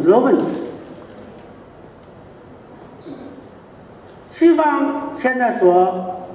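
An elderly man speaks slowly into a microphone, heard through loudspeakers in a large echoing hall.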